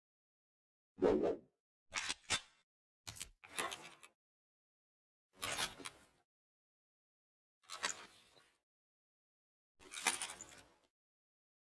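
Metal clicks and clacks as a pistol is handled and reloaded.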